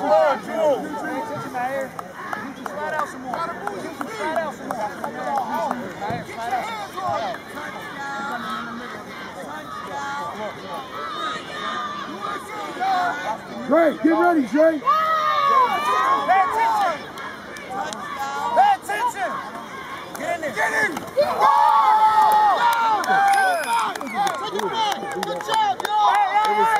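Adults and children shout and cheer outdoors, with louder cheering near the end.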